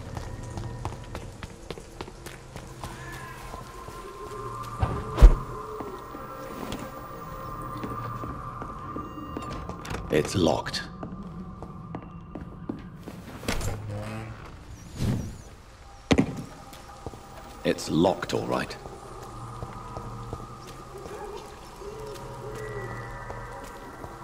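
Footsteps tread on stone and wooden floors.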